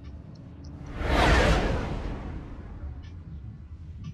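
An explosion booms and roars, then fades.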